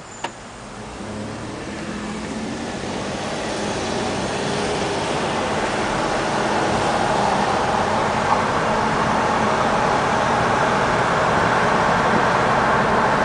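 A car's engine hums as the car accelerates, heard from inside.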